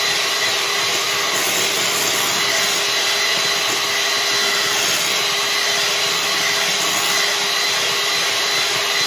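An electric hand mixer whirs steadily while beating in a bowl.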